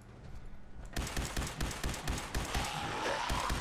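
A gun fires in fast, rapid bursts.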